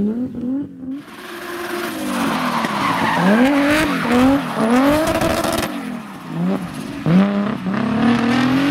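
Tyres squeal on asphalt as a car drifts.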